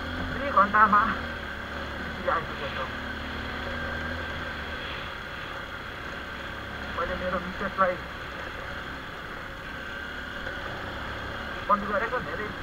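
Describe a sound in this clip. Tyres roll and crunch steadily over a dirt road.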